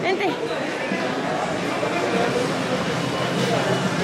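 People murmur and chatter in a large echoing hall.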